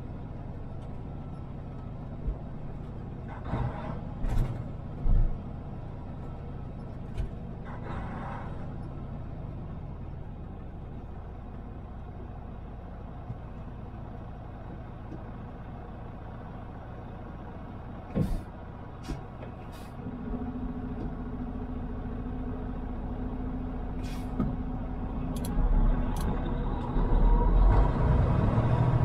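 Tyres roll on the road with a steady rumble.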